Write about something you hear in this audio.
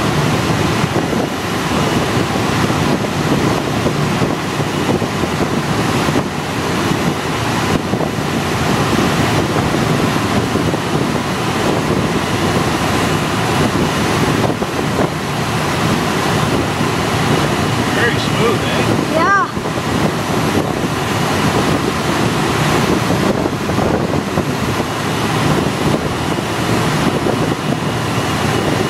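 A small plane's engine drones loudly and steadily.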